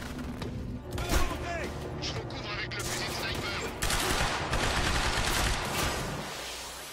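Rapid gunfire bursts out.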